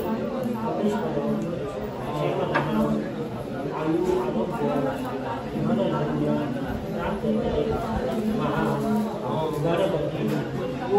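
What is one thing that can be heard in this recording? A man chants a prayer into a microphone, close and steady.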